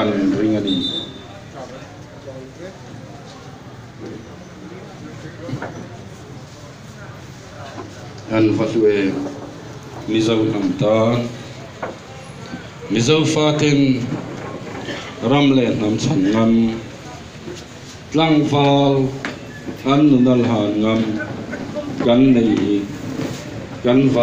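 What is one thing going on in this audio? A crowd of people murmurs and talks nearby.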